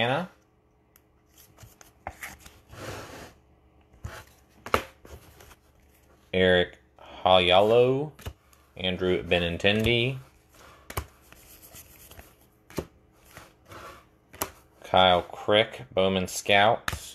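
Trading cards rustle and click as hands flip through them.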